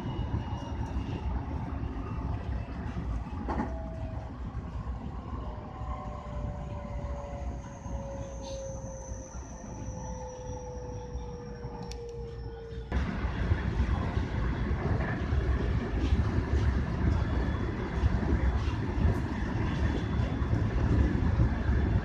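A train rumbles and clatters along the rails.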